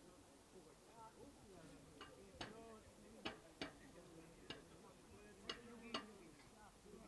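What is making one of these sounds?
Men talk nearby in calm voices.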